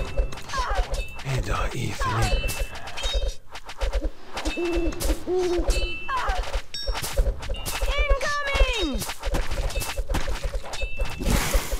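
Game towers fire in quick bursts of popping shots and chiming effects.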